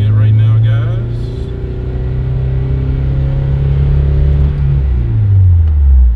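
A car engine hums loudly from inside the car as it speeds up.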